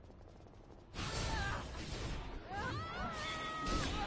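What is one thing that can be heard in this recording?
Magic spells whoosh and ring out in bursts.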